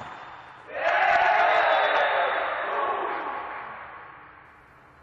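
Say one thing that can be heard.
Men shout and cheer loudly in an echoing hall.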